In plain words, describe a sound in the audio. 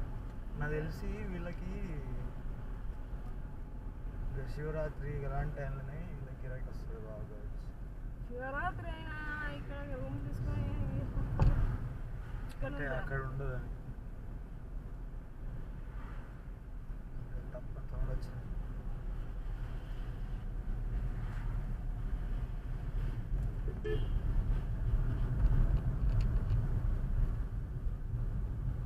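A car drives along a road with a steady low rumble.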